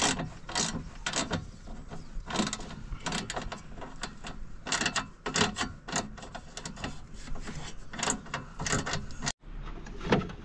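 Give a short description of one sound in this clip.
A wrench clicks and clinks against metal up close.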